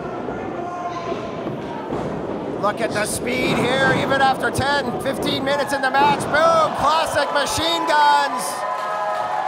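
Bodies slam onto a wrestling ring mat with loud thuds.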